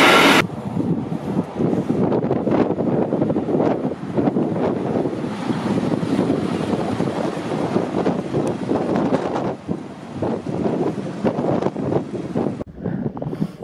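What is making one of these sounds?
A rail maintenance vehicle rumbles past along the track with a loud engine.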